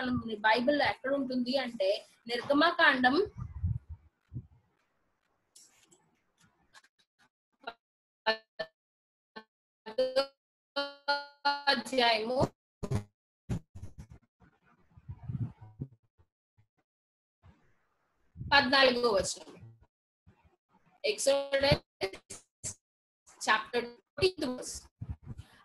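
A young woman speaks with animation over an online call, in bursts with pauses.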